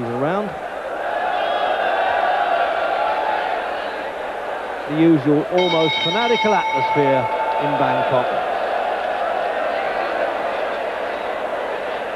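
A large crowd cheers and roars.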